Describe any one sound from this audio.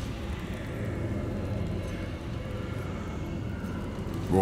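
A magical energy orb hums and swirls with a low, steady rumble.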